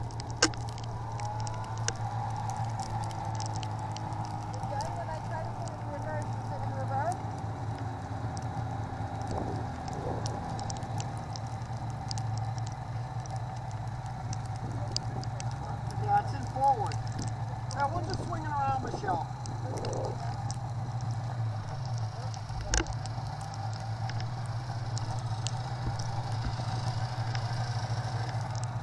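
A snowmobile engine idles with a steady low hum.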